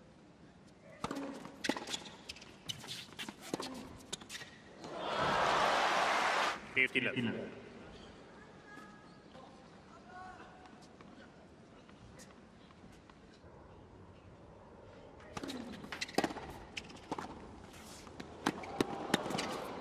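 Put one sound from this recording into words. A tennis ball is struck sharply by a racket, back and forth.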